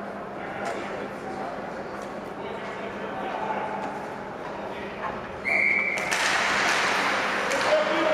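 Skates scrape and swish on ice in a large echoing rink.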